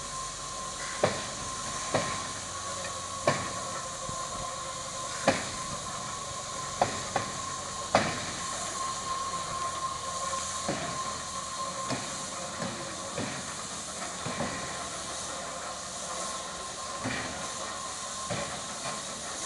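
Metal wheels clank and knock over rail joints.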